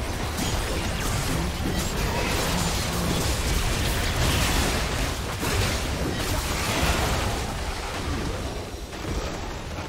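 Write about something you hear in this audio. Magical spells blast and crackle in a hectic fight.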